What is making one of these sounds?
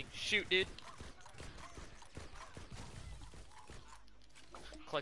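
Video game weapon fire bursts and crackles.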